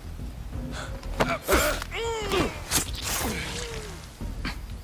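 A man gasps and pleads close by.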